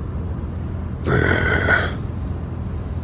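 A man speaks in a low voice.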